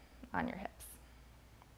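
A young woman speaks a few words calmly nearby.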